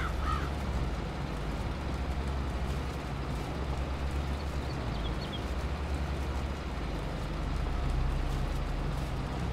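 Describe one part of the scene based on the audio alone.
Tractor engines rumble steadily.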